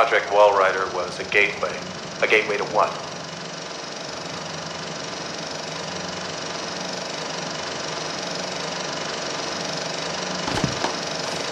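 A film projector whirs steadily.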